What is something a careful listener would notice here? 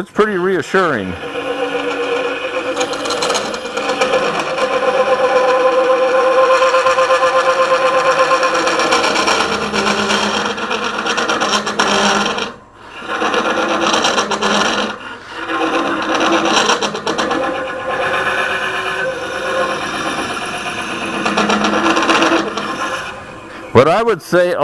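A hooked cutting tool scrapes and chatters against wood inside a spinning hollow form.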